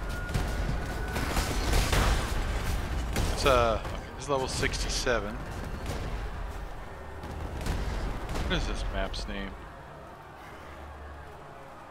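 Game spells crackle and thud during a fight.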